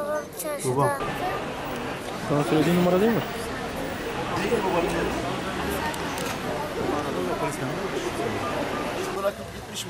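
Street traffic hums in the background.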